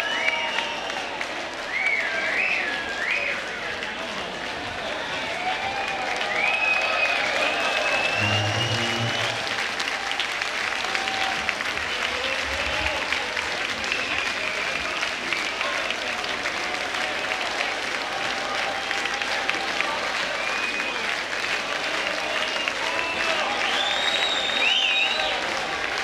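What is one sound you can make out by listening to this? A large crowd cheers and applauds steadily in a big hall.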